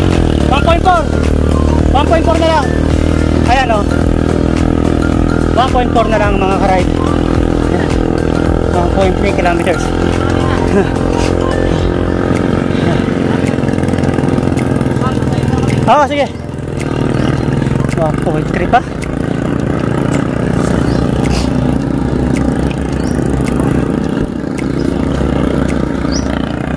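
A motorcycle engine hums steadily close by while riding along a road.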